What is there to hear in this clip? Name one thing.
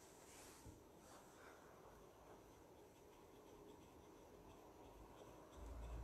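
A rolling pin rolls softly over a padded surface.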